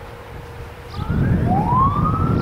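A diesel freight locomotive approaches with a loud roar.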